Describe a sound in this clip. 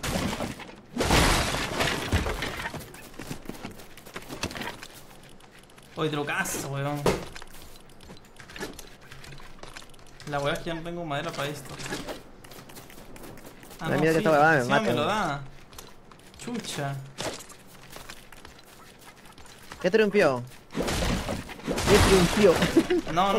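Game sound effects clatter and chime as blocks break.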